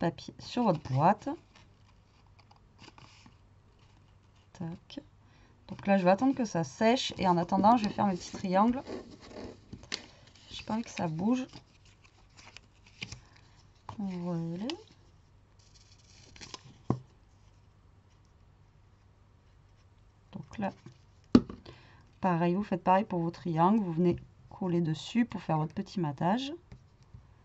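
Stiff paper rustles and taps as it is handled.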